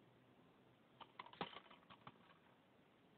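A plastic case clicks and rattles in hands.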